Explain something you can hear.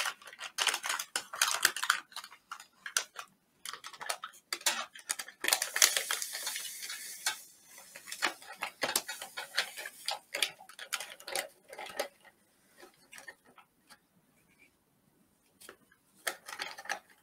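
Plastic packaging crinkles and rustles as it is torn and handled.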